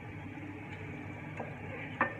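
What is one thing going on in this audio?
A wooden spoon knocks and scrapes against a glass dish.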